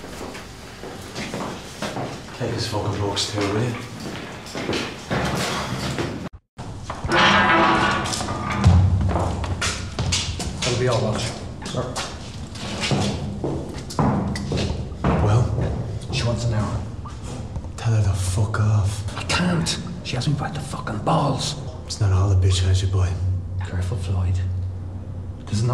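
A second man answers in a low, gruff voice.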